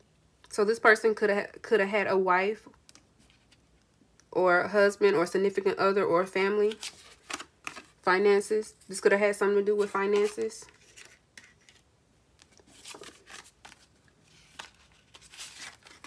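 Paper cards rustle and tap as they are laid down on a table.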